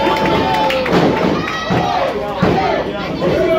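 Bodies slam hard onto a wrestling ring mat.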